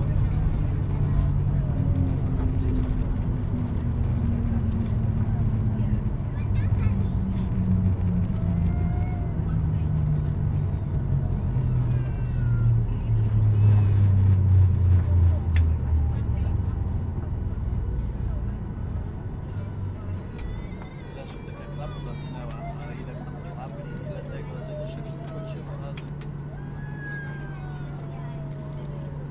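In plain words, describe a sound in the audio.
Aircraft wheels rumble steadily on a runway.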